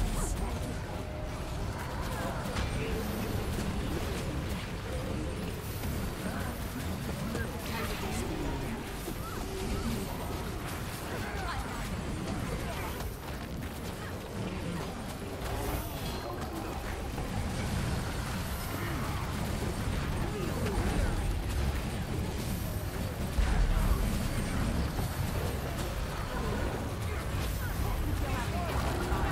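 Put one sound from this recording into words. Magic spells crackle and burst in a busy fight.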